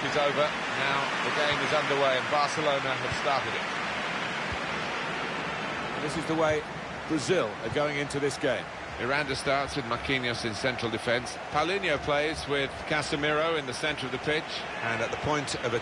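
A football is kicked with dull thumps.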